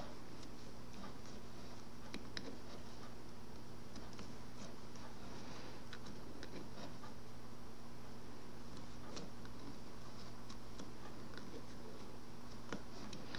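A metal hook clicks and scrapes softly against the pegs of a wooden knitting loom.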